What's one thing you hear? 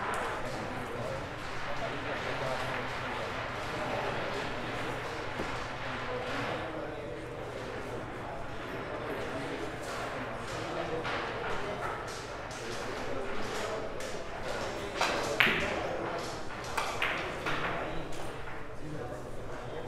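Billiard balls click against each other on a table.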